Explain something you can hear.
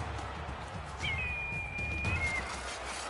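An eagle screeches.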